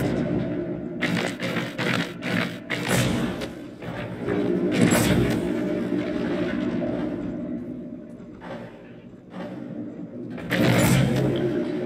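Heavy metal mechanisms clunk and grind as they turn.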